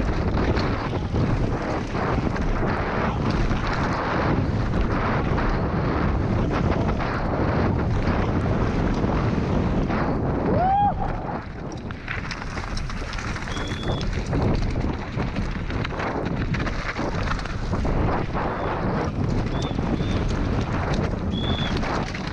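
Bike tyres rattle and crunch over a rough, stony dirt track.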